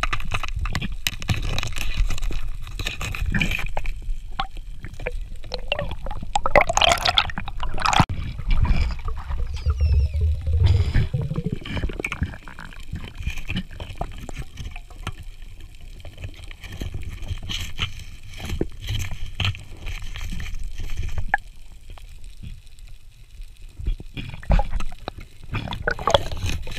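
Water rumbles and swirls in a low, muffled hush underwater.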